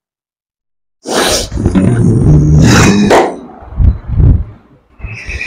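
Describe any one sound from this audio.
A man shouts loudly and forcefully close by.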